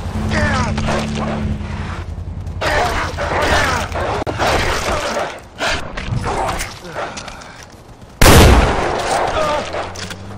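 Wolves snarl and growl close by.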